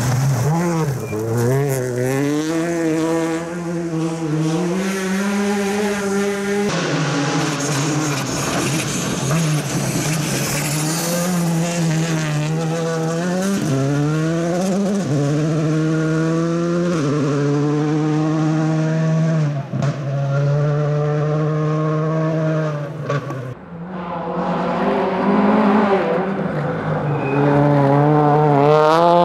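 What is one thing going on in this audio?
A rally car engine roars and revs hard, rising and dropping with each gear change.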